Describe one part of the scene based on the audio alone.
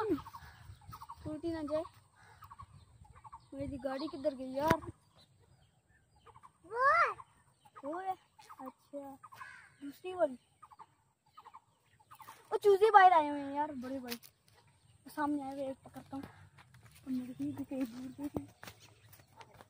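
A young boy talks animatedly close by.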